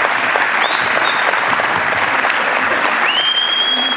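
A children's choir sings in a large echoing hall.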